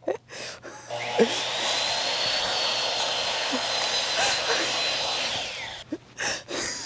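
A power saw whines as it cuts.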